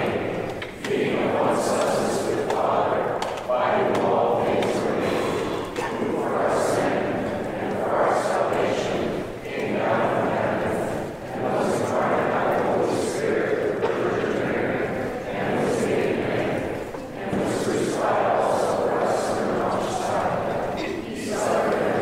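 A congregation recites together in unison, echoing in a large hall.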